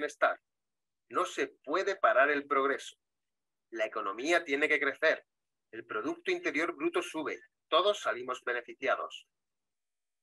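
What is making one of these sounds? A woman speaks calmly through an online call.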